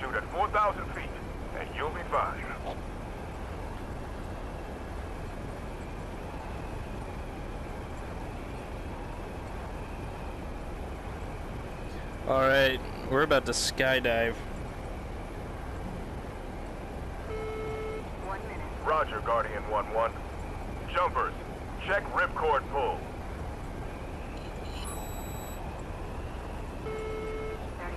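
Aircraft engines drone steadily in a low rumble.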